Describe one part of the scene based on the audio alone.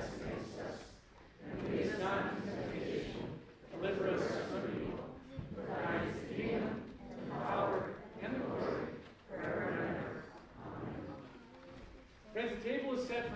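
A congregation of men and women recites aloud together in unison in a large echoing room.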